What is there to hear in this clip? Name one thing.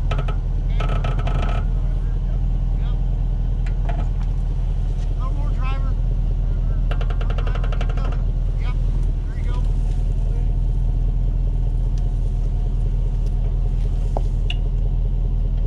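Car tyres roll slowly over grass and soft ground.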